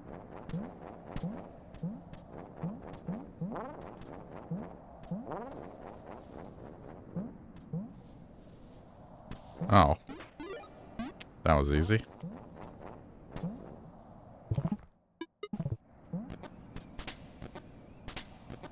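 Short rising blips sound again and again as a small creature hops.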